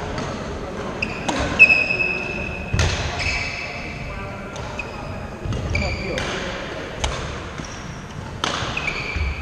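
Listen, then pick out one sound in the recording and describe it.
Trainers squeak sharply on a wooden floor in a large echoing hall.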